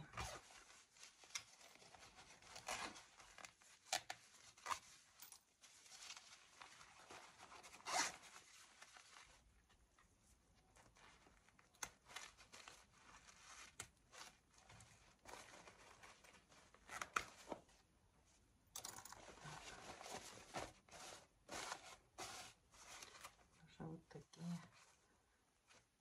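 Plastic sheeting crinkles and rustles as hands handle it.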